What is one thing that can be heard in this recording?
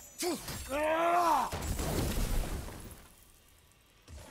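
A magical orb bursts with a loud, crackling blast.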